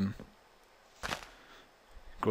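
A block cracks and breaks apart with a short crunch.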